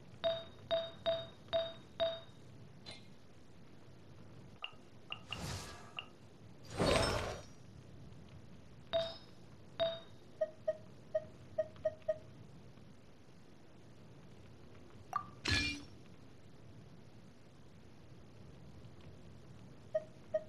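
Short electronic chimes blip in quick succession.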